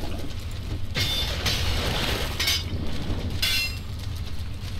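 A tool strikes a pile of scrap metal with sharp clanks.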